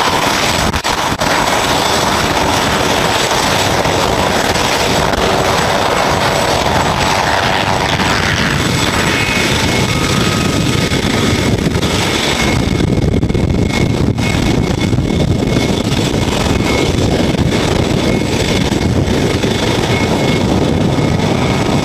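A helicopter's engine whines loudly and steadily close by.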